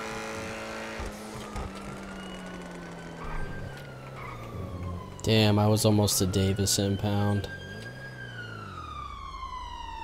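A car engine hums and drops in pitch as the car slows down.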